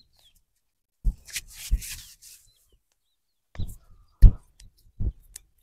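Hands slap and rub a bare foot during a massage.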